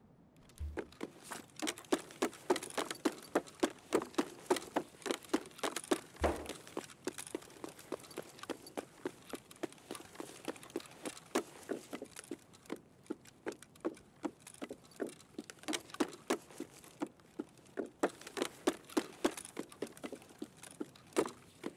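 Footsteps tread quickly and steadily on a hard floor.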